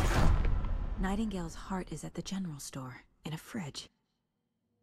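A young woman speaks in a low, tense voice.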